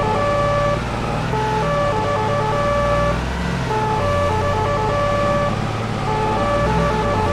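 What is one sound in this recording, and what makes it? A van engine hums steadily as the van drives slowly.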